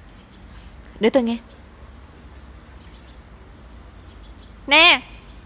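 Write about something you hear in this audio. A young woman answers sharply, close by.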